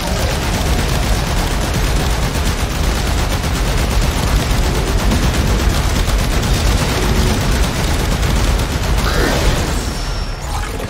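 Electric energy crackles and buzzes loudly.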